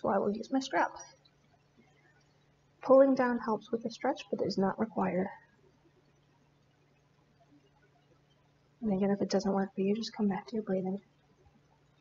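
A woman speaks calmly and slowly in short phrases, close by.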